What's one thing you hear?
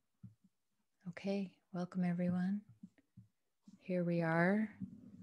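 A woman sings in sustained phrases, heard through an online call.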